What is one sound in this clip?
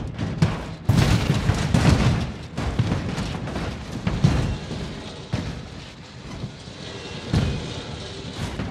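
A truck crashes and scrapes along a hard surface with loud bangs.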